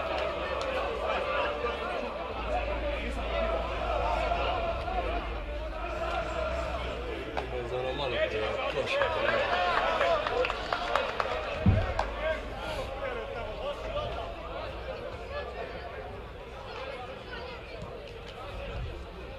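Men call out and talk across an open outdoor field.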